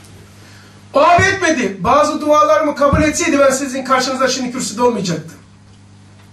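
An older man speaks with animation into a microphone.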